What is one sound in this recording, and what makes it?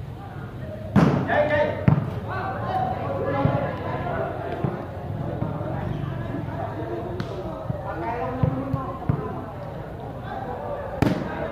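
A volleyball is hit hard by hand.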